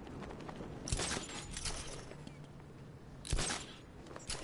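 A heavy thud sounds as a figure lands.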